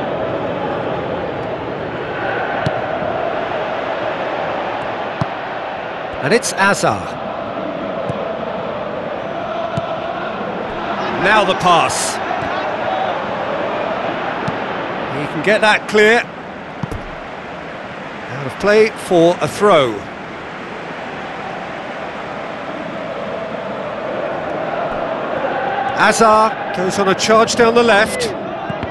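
A stadium crowd roars and murmurs steadily throughout.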